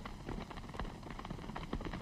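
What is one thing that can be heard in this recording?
A herd of buffalo plods over dry ground.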